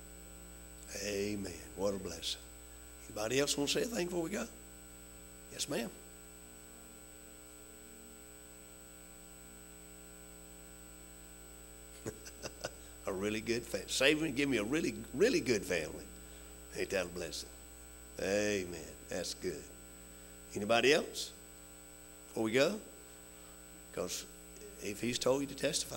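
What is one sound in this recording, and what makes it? An elderly man speaks calmly through a microphone, with pauses.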